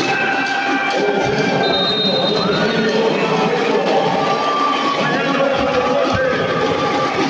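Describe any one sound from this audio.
Sneakers squeak on a basketball court.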